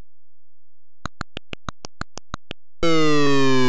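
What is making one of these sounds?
Short electronic blips tick in quick succession.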